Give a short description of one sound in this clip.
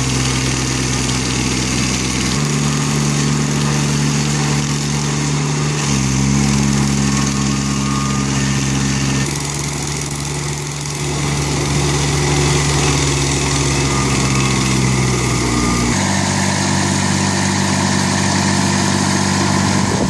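An engine roars loudly and steadily.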